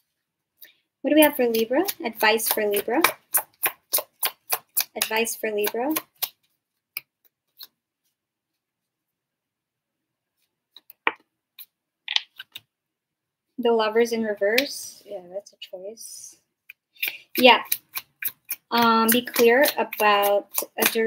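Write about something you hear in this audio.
A young woman speaks softly and calmly close to a microphone.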